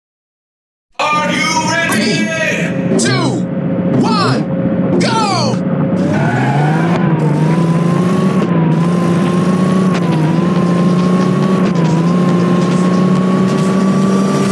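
A game car engine idles, then revs up and roars as the car speeds up.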